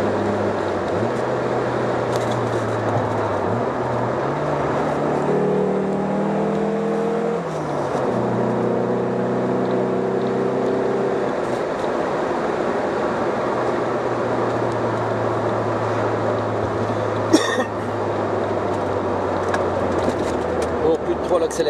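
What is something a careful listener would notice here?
A car engine hums steadily from inside the car, shifting pitch as it changes gear.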